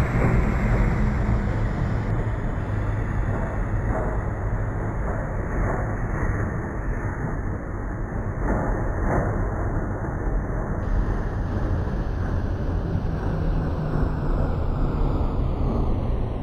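An electric multiple-unit train rumbles along the track.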